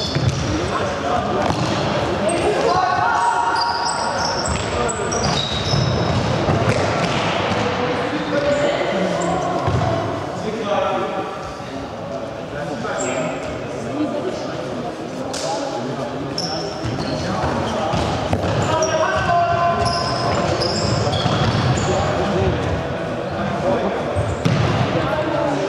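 Young players' shoes squeak sharply on the floor of a large echoing hall.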